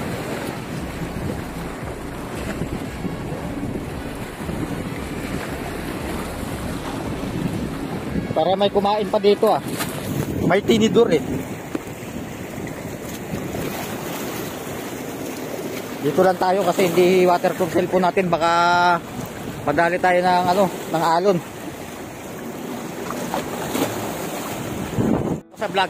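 Water laps and splashes gently against rocks.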